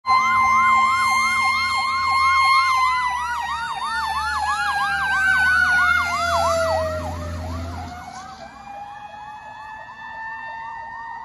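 A fire engine's horn blares a steady tone.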